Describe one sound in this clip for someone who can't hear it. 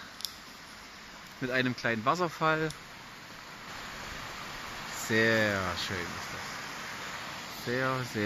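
A small mountain stream trickles and splashes over stones.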